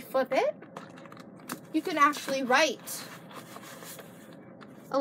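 Paper pages rustle and flap as a notebook is flipped.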